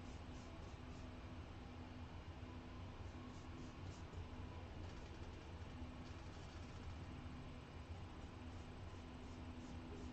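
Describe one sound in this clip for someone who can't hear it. A brush strokes softly across a canvas.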